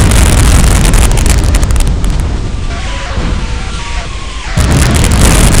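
Flames roar and crackle on a burning ship.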